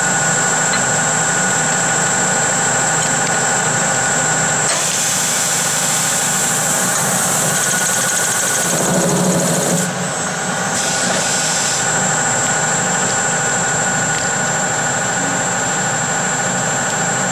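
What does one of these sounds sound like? A lathe machine hums and whirs steadily.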